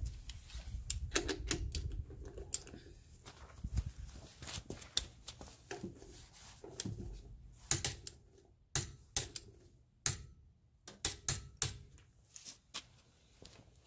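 A wrench clicks sharply on a wheel nut several times.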